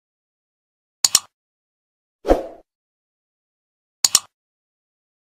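A mouse button clicks.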